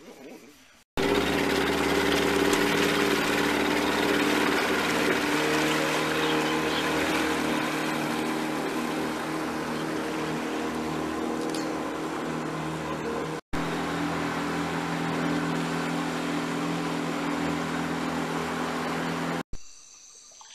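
A boat's motor drones steadily while moving over water.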